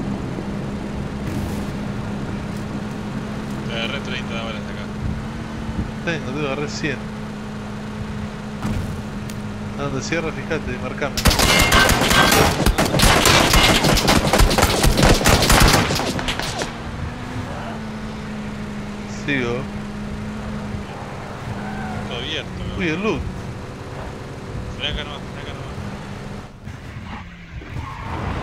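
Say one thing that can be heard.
A truck engine hums steadily as it drives over rough ground.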